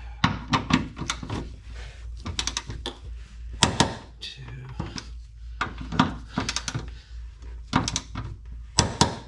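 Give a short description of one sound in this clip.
A ratchet wrench clicks in quick bursts, close by.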